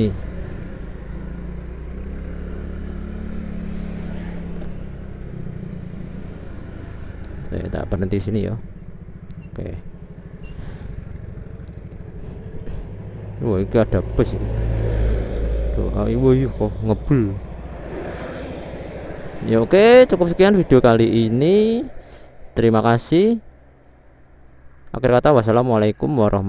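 A motorcycle engine hums steadily while riding.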